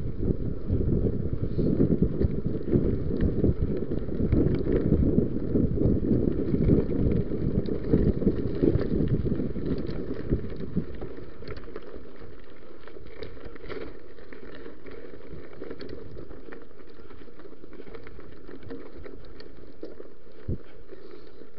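Bicycle tyres crunch and rattle over a rough gravel track.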